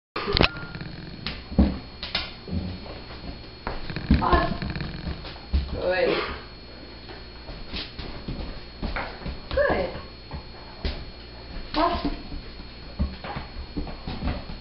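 A dog's claws click on a tile floor.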